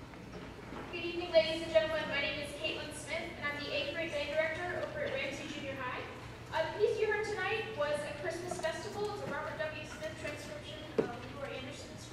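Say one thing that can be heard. A young woman speaks calmly through a microphone in a large hall.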